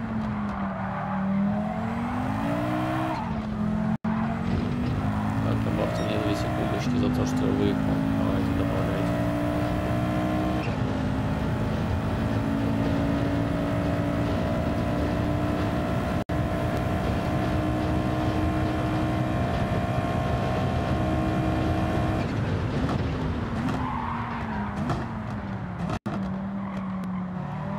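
A racing car engine roars, climbing in pitch through the gears and then winding down.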